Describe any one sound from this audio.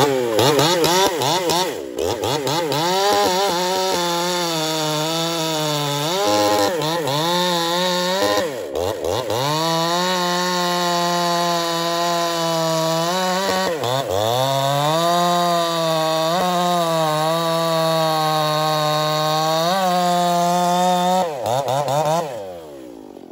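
A chainsaw engine roars loudly while cutting through a log, its pitch dipping and rising as it bogs down.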